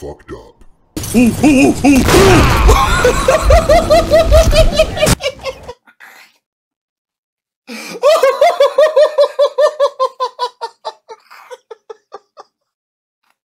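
A man laughs loudly and hard into a close microphone.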